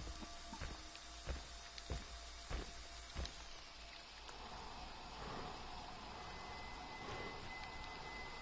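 Rain patters steadily outdoors.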